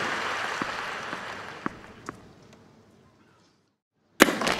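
A crowd applauds and the applause fades away.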